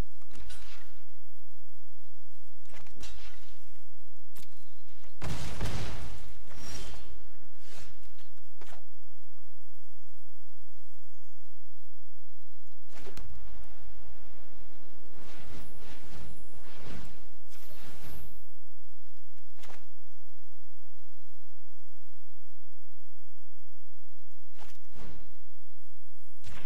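Short digital whooshes and chimes sound as cards are played.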